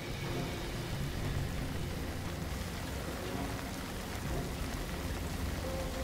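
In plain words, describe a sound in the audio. Light rain falls steadily.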